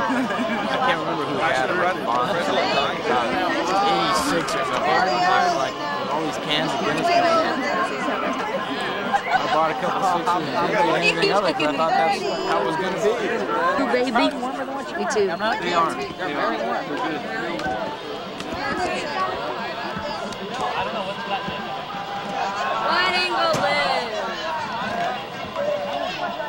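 A group of young adults chatter and laugh together outdoors, close by.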